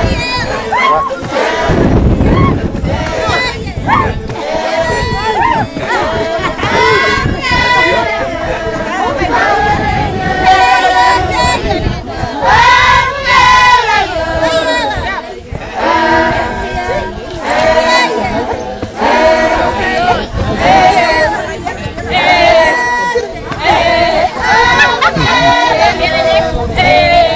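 A group of women and men sing and chant together outdoors.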